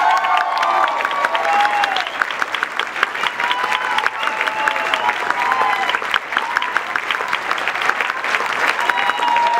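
A crowd cheers and whoops.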